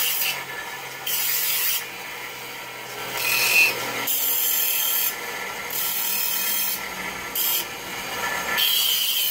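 A bench grinder hums steadily.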